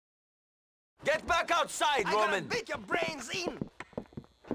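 A man gives orders calmly.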